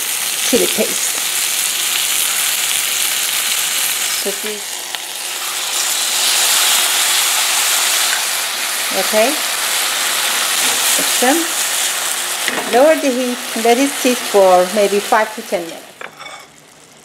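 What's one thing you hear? Vegetables sizzle loudly in a hot pan.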